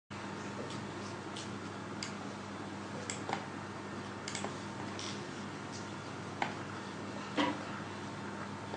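A young woman speaks calmly and softly, close by.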